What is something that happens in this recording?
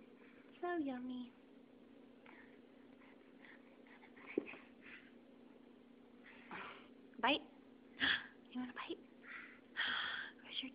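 A baby squeals and babbles loudly close by.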